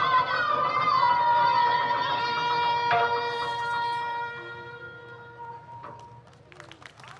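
Music with a sustained wind instrument plays through loudspeakers and fades out.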